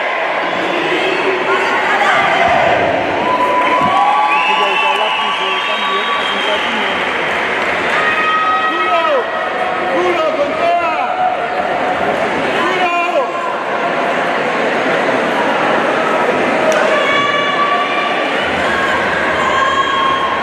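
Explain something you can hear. A group of young women shout a cheer in unison in a large echoing hall.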